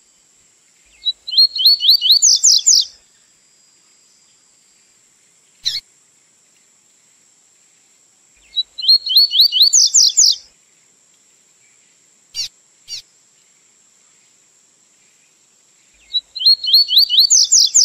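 A small songbird sings a quick, sharp trilling phrase close by, with short pauses between phrases.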